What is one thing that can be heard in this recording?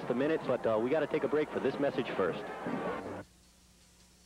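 A large crowd cheers and shouts loudly in the stands.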